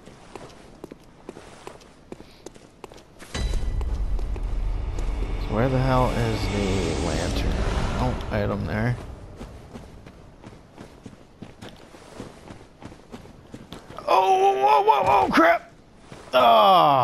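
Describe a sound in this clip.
Footsteps tread steadily over rough ground.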